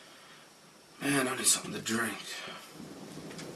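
A man yawns loudly.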